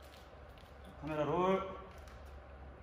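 A young man says a few words close to a microphone.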